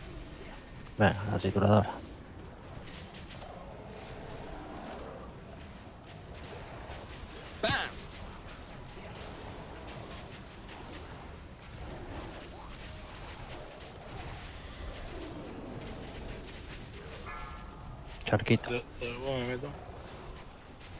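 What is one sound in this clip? Game spell effects burst and chime in bursts.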